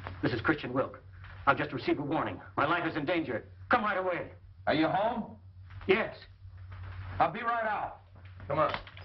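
A middle-aged man speaks firmly into a telephone.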